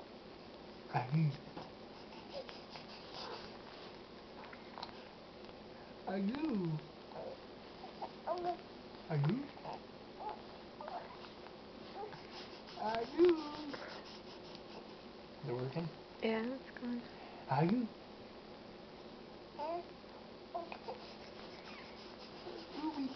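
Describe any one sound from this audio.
A baby coos and babbles nearby.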